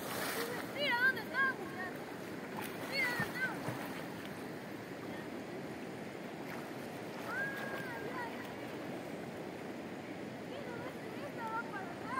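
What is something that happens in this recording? Water sloshes as a boy swims.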